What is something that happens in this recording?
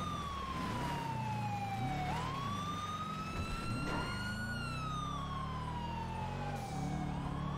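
Tyres rumble over rough ground and road.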